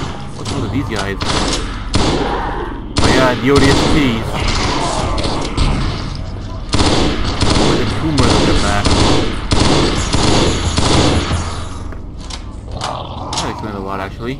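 Heavy blows thud as a fighter punches at close range.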